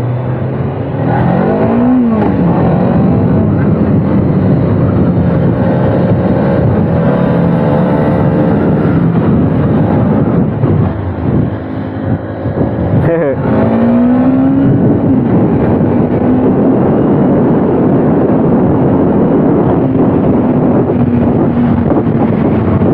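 A motorcycle engine revs up and down while riding.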